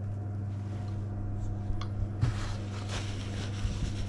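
A metal pot clanks as it is moved.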